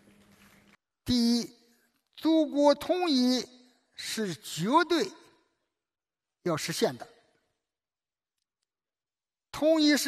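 A man speaks firmly through a microphone in a large hall.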